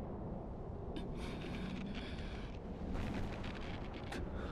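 A leather glove creaks as a fist clenches tight.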